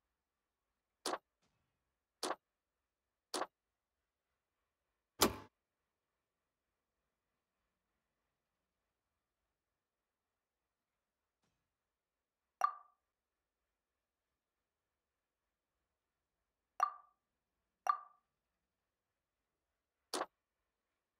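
Short game menu clicks and chimes sound now and then.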